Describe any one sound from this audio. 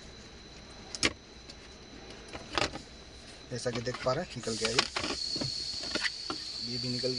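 A gear lever clunks and knocks a few times.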